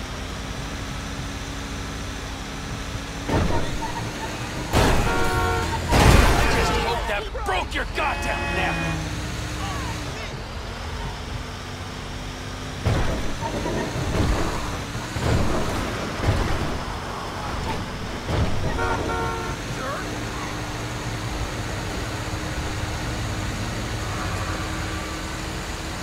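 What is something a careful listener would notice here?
A truck engine hums steadily as it drives along.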